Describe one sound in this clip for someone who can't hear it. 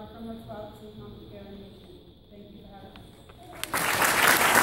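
A group of women sing together on a stage.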